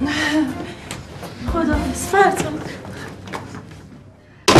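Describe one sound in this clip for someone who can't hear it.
A woman speaks cheerfully nearby.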